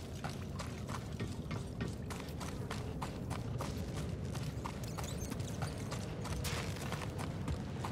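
Footsteps crunch quickly on loose gravel.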